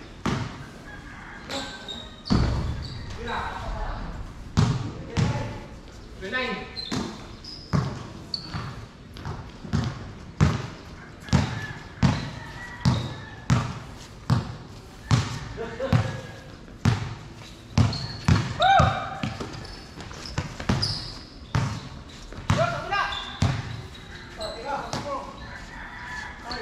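Young men call out to each other during play.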